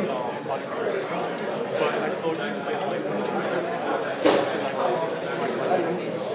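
Many people chatter and murmur in a large hall.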